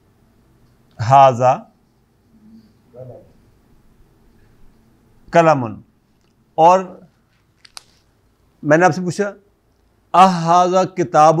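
An elderly man speaks calmly and clearly, close by, in short phrases.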